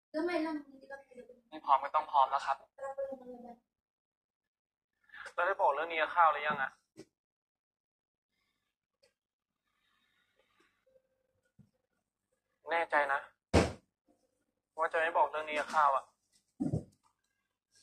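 A young man speaks calmly, heard through a small loudspeaker.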